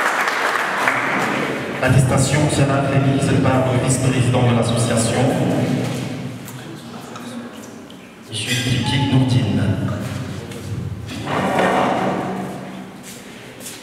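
A man speaks with animation through a microphone and loudspeakers in an echoing hall.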